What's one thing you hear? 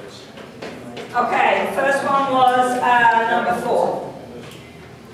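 A woman speaks clearly to a group.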